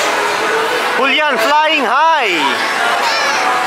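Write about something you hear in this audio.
Children squeal with excitement.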